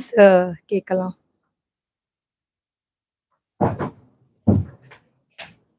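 A young woman speaks into a microphone with pauses, close by.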